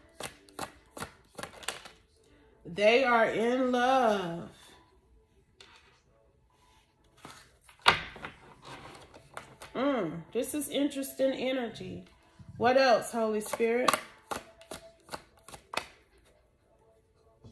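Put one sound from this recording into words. Playing cards are shuffled with quick, flicking riffles.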